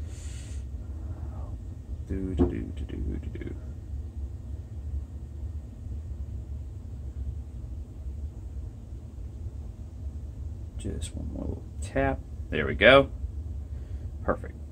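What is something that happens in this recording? A thin stick scrapes and taps softly inside a small cup.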